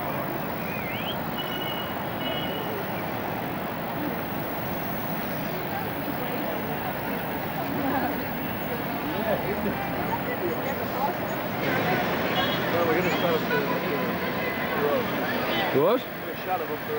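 Busy street traffic rumbles steadily.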